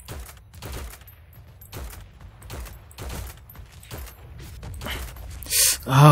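Gunshots crack in short bursts nearby.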